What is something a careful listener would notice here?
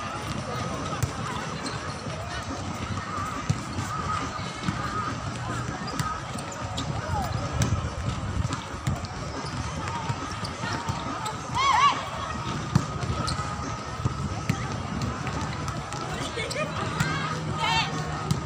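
A volleyball is struck with sharp slaps outdoors.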